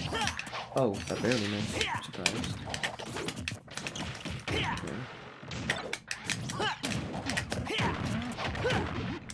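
Punches, hits and whooshing effects of a fighting game land in quick succession.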